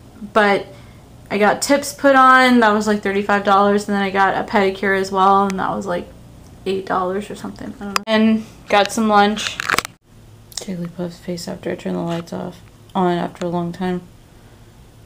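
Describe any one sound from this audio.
A young woman talks with animation close to the microphone.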